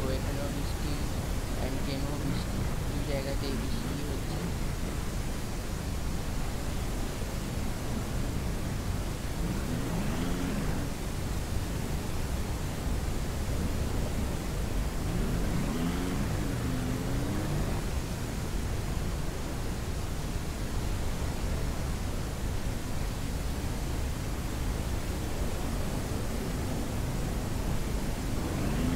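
A small utility vehicle's engine hums steadily as it drives along.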